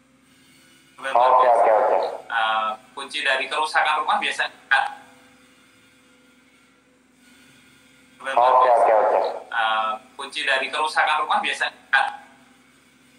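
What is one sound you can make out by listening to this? A man speaks with animation into a microphone, heard through a phone's speaker.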